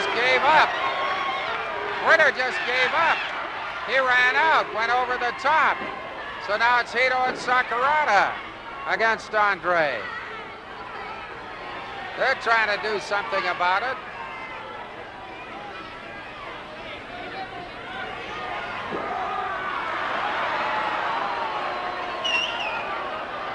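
A large crowd murmurs steadily.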